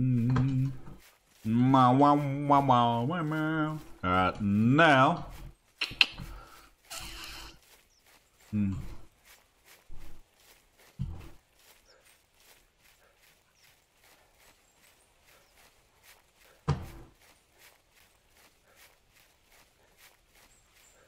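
Footsteps rustle through leafy undergrowth at a steady walking pace.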